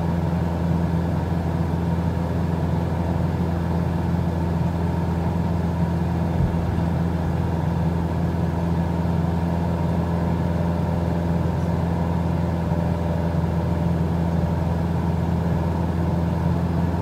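A small propeller plane's engine drones steadily from inside the cockpit.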